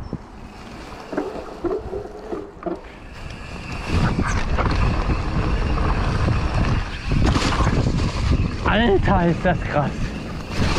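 Bicycle tyres crunch and rustle over dry leaves.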